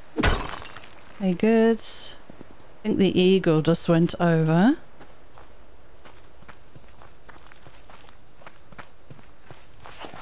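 Footsteps crunch softly on grass and gravel.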